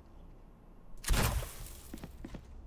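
A sharp electronic whoosh bursts out once.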